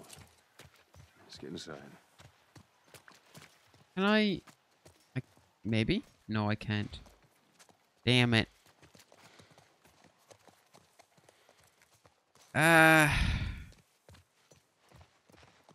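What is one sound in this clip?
Footsteps crunch softly on grass and wet pavement.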